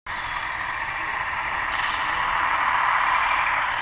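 A model locomotive's motor hums steadily.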